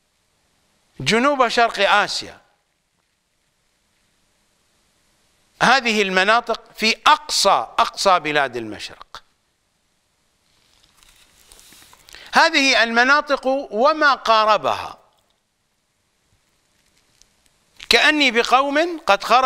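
An elderly man speaks with animation into a close microphone, in bursts with pauses.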